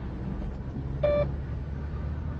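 A door intercom buzzer sounds briefly.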